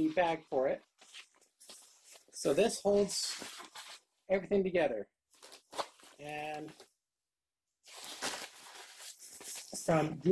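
A fabric carry bag rustles as it is handled.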